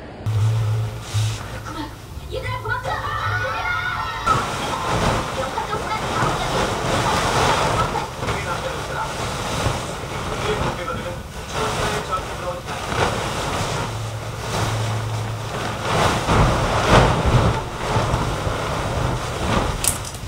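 Bedding rustles and flaps as a duvet is shaken into its cover.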